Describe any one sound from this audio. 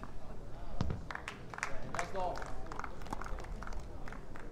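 A crowd claps after the point.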